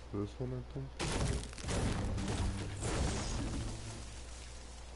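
A pickaxe strikes wood with hard thuds.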